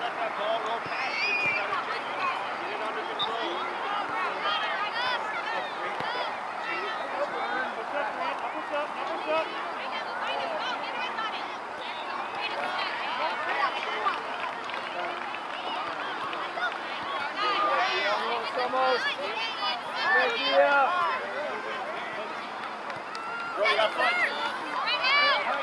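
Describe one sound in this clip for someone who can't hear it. Players shout to each other across an open field.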